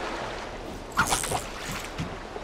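A fishing float plops into water.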